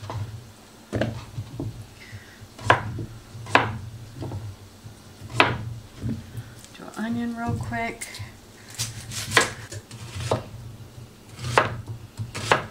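A knife chops on a cutting board with sharp, uneven knocks.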